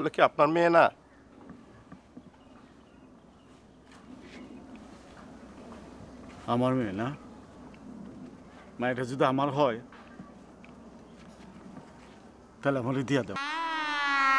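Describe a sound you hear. Two middle-aged men talk calmly nearby.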